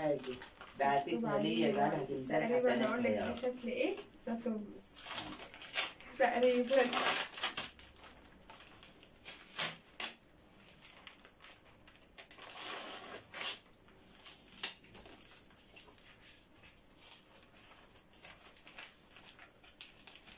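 A plastic bag rustles and crinkles in a woman's hands.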